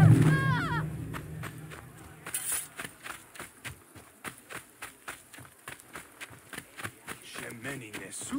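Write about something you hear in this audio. Quick footsteps run over a dirt path.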